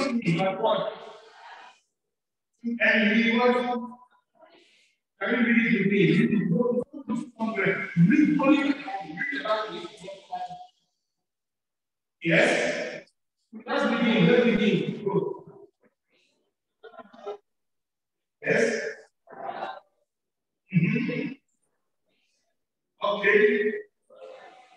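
A man preaches with animation into a microphone, heard through loudspeakers in an echoing hall.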